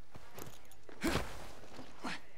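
A heavy thud lands close by.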